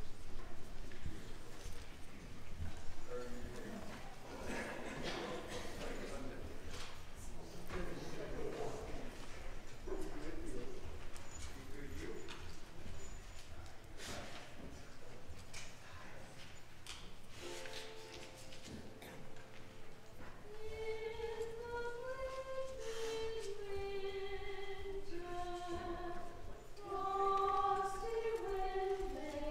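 A piano plays along with a choir.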